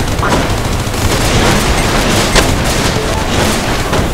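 A large explosion booms.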